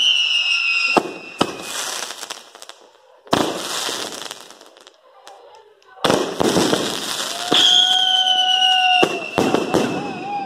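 Fireworks explode with loud sharp bangs.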